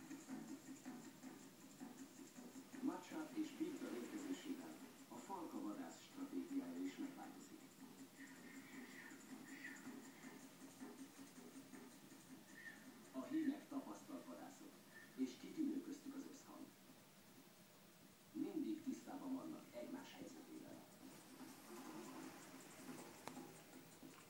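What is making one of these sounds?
A television plays a programme nearby.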